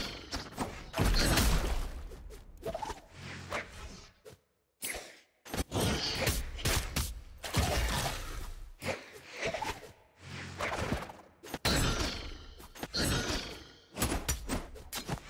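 Game weapons swing and strike with sharp whooshes and hits.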